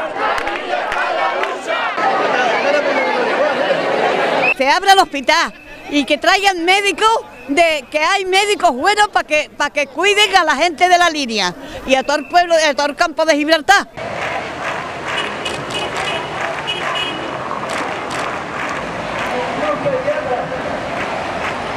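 A large outdoor crowd chants and murmurs.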